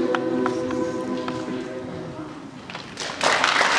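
A man sings into a microphone in an echoing hall.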